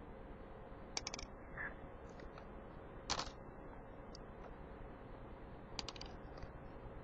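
Coins clink as they drop onto a pile of coins.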